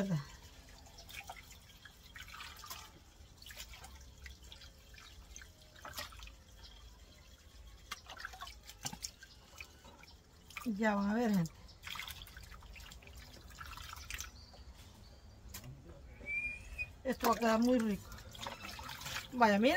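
Water splashes as it is poured.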